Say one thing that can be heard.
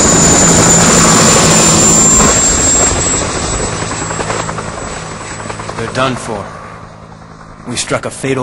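A helicopter's rotor thumps and whirs loudly overhead, then fades into the distance.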